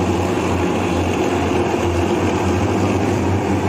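A truck engine hums steadily as it drives by.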